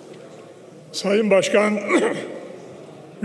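A man speaks into a microphone, heard in a large echoing hall.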